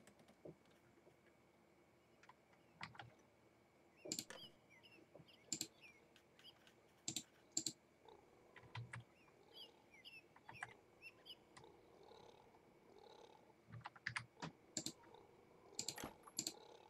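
Game interface clicks tick sharply now and then.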